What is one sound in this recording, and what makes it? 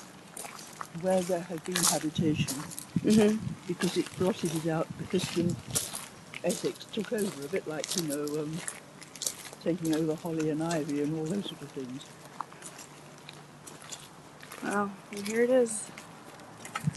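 An elderly woman talks calmly close by.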